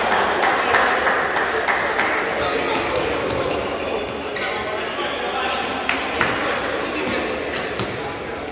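Spectators murmur in a large echoing hall.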